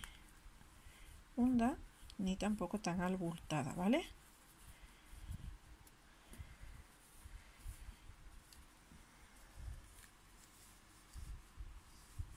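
Hands softly rustle and squeeze fluffy stuffing.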